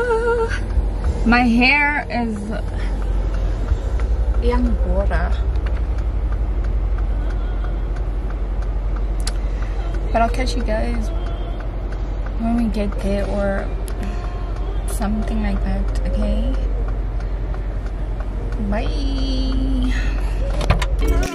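A young woman speaks casually close by.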